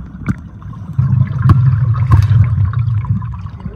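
Air bubbles from a diver's breathing gurgle loudly underwater.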